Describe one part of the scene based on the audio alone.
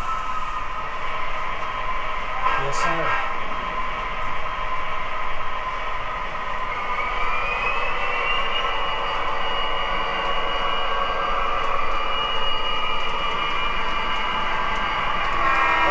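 An O scale model diesel locomotive whirs on its track.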